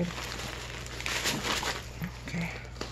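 Soft fabric rustles as a bag is handled.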